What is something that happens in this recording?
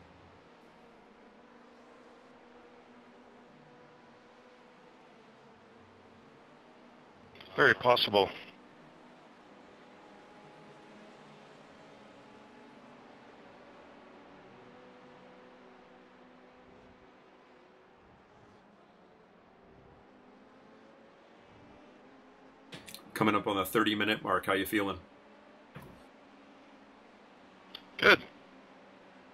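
A race car engine hums steadily.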